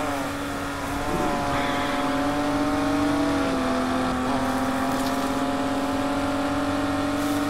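A car engine hums steadily at high speed, with small shifts in pitch.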